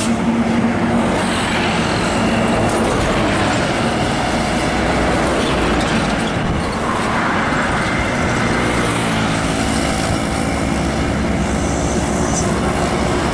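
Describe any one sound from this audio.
A bus engine hums as it approaches.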